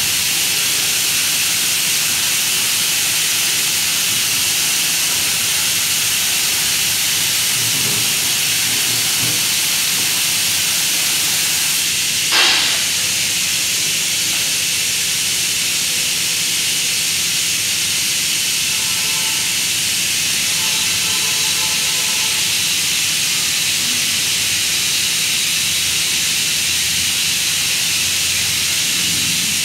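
A spray gun hisses steadily at close range.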